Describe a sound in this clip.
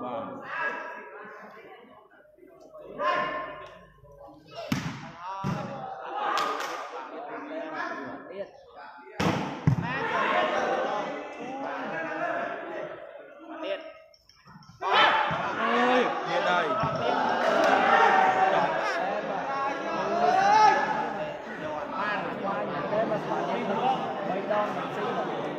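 A crowd of spectators chatters and shouts.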